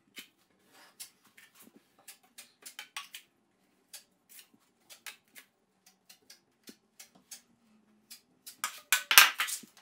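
A taping knife scrapes joint compound against a metal mud pan.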